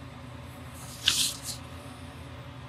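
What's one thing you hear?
Paper rustles briefly.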